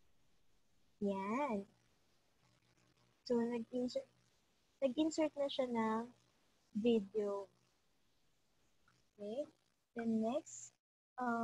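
A young woman speaks calmly through an online call microphone, in short phrases with pauses.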